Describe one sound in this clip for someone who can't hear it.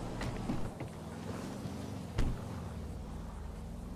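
A car door opens and shuts with a thud.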